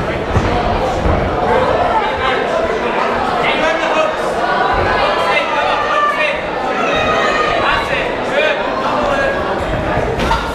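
Punches thud against bodies.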